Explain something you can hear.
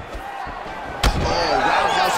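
A kick lands with a sharp thud.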